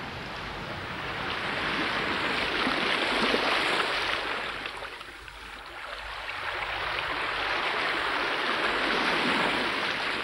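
Waves surge and wash over rocks nearby.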